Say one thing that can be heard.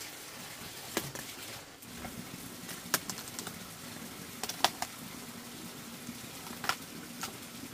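Leaves snap as they are pulled off a cabbage.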